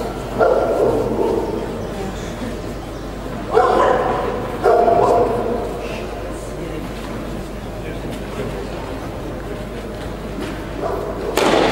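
A tennis ball is hit back and forth with rackets in a large echoing hall.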